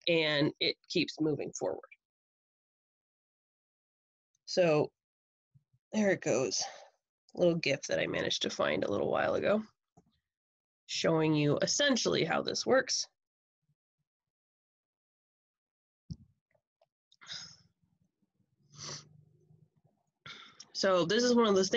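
A woman lectures calmly through a microphone on an online call, with pauses.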